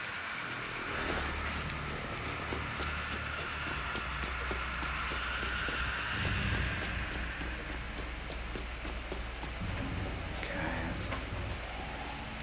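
Footsteps tap on a hard floor in an echoing corridor.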